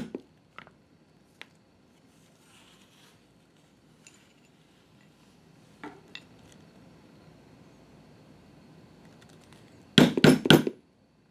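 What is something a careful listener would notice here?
A mallet strikes a metal stamping tool on tooling leather.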